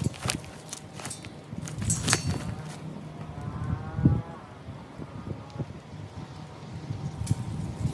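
Dry wood chips crackle and rustle in a man's hands.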